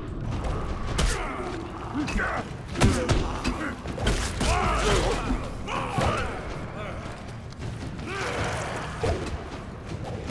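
Heavy blows and clashes sound in a fight.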